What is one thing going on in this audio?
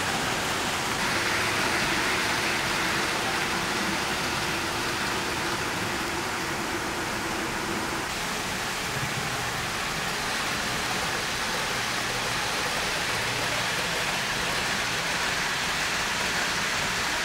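A model train whirs and rattles steadily along its track.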